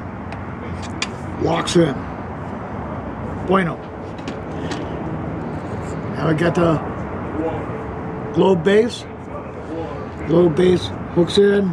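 Metal parts clink and scrape against a tabletop.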